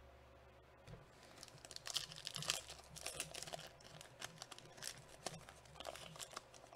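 A foil wrapper crinkles and tears as a pack is opened.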